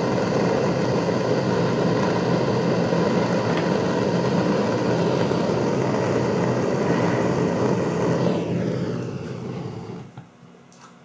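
A gas torch roars steadily, then fades out.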